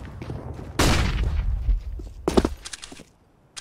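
A rifle scope clicks as it zooms in.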